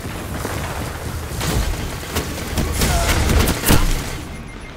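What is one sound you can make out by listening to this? A fiery explosion roars.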